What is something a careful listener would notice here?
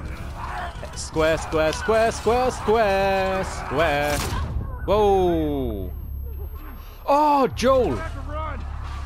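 A man shouts urgently, close by.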